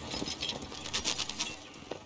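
A horse-drawn wagon rolls away with creaking wheels.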